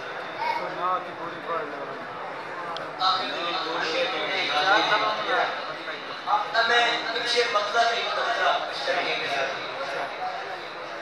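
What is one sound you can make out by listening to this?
A crowd of men chants and calls out together.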